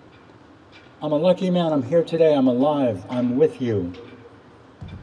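An older man speaks calmly into a microphone outdoors.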